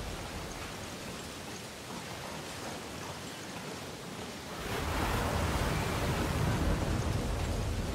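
Footsteps clang on a metal floor.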